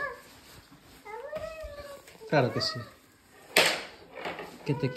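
A woman speaks to a baby in a high, sing-song voice close by.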